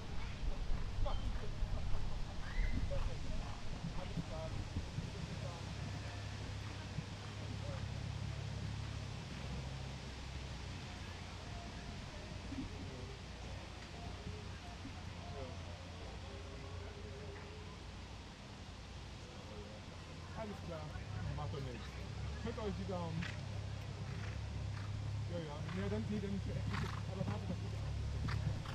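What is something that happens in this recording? A horse canters with dull hoofbeats on grass.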